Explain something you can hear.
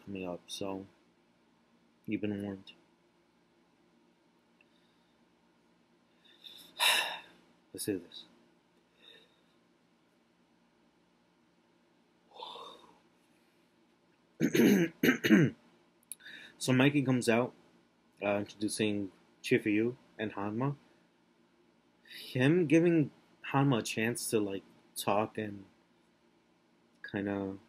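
A young man talks calmly and close to a microphone, with pauses.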